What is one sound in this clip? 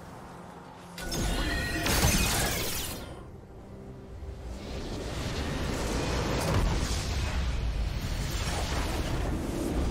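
Magic blasts crackle and explode in a loud game battle.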